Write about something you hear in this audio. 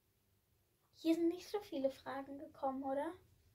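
A young girl speaks brightly, close by.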